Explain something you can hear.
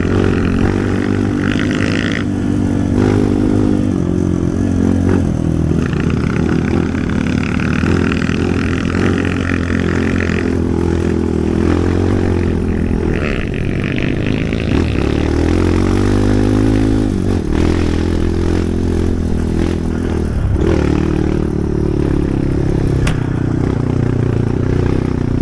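A dirt bike engine drones and revs up and down close by.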